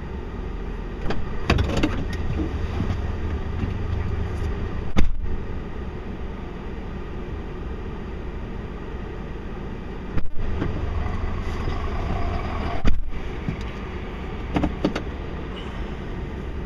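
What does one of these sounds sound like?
A heavy truck engine rumbles steadily, slowly pulling a long load.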